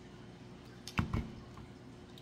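Pliers snip through a wire with a sharp click.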